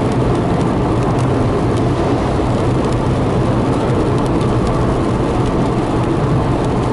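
Raindrops tap on a windshield.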